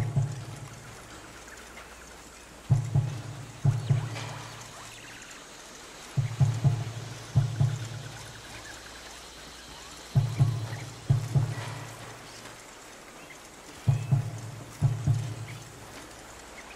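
Many footsteps crunch on a dirt path.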